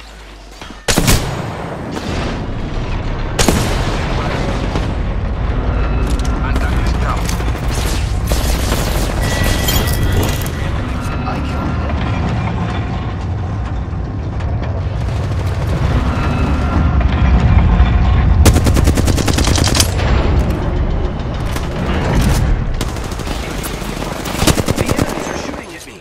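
Gunshots crack in loud bursts and single shots.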